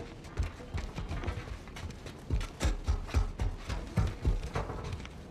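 Footsteps clang quickly on metal stairs.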